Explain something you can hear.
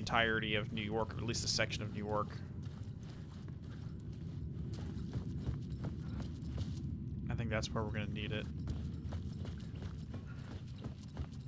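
A man's footsteps crunch on gravel.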